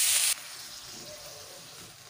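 A metal spatula scrapes and stirs in a pan.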